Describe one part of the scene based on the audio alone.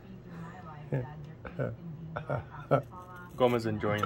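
Scissors snip through a beard.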